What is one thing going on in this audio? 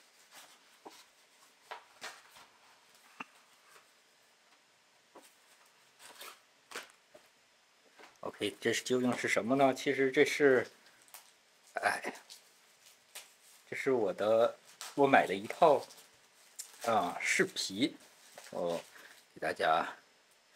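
A plastic mailer bag crinkles and rustles as it is handled.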